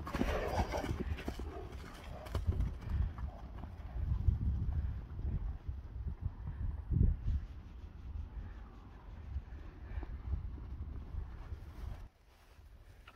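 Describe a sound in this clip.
Horses gallop across grass with dull hoof thuds.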